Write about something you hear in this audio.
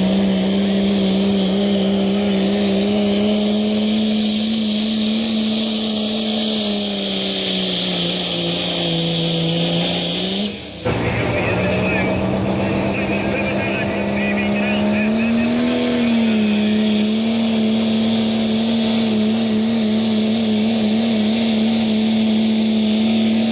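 A diesel pickup truck's engine roars loudly at full throttle, close by.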